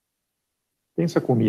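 A man speaks calmly through an online call microphone.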